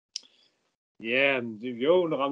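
A young man speaks cheerfully over an online call.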